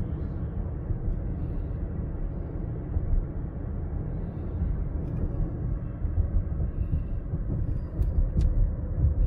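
A car engine hums steadily with a low road rumble from inside the car.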